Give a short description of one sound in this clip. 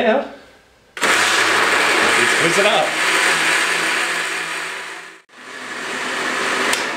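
A blender motor whirs loudly, stops briefly and starts again.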